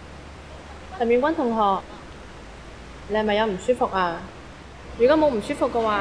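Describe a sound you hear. A woman asks a question in a concerned voice nearby.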